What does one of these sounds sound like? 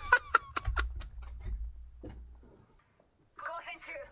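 A metal door slides open.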